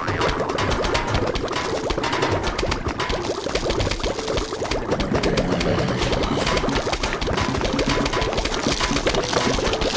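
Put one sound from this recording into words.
Rapid popping shots fire in quick succession without letup.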